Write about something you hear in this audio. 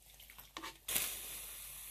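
Wet yarn drips water back into a pot.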